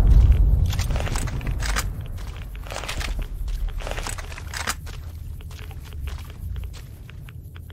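A big explosion booms and rumbles, slowly fading.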